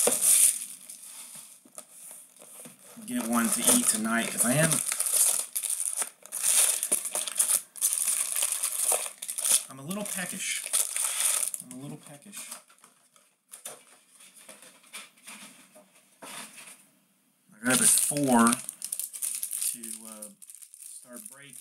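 Cardboard and foil packs rustle and crinkle as they are handled.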